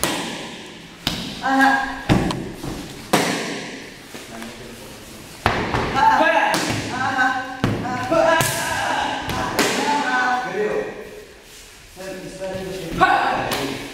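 Kicks thud against a padded training dummy.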